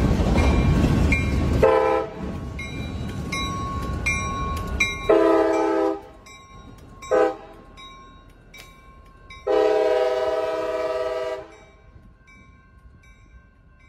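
A freight train rumbles and clanks past close by.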